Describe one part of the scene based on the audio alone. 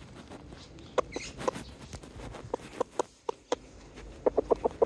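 A hen clucks softly in short bursts close by.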